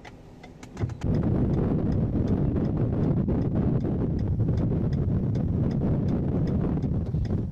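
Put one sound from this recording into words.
Wind and road noise roar steadily inside a moving car.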